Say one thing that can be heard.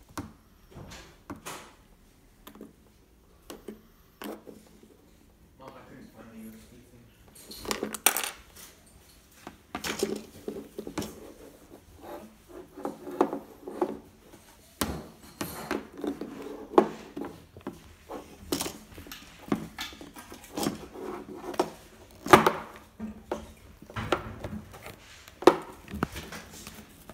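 Plastic toys click and clatter against each other.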